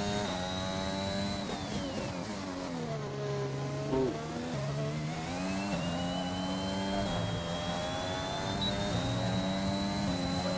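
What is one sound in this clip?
A racing car engine screams at high revs, dropping in pitch as it brakes and downshifts, then rising again as it accelerates through the gears.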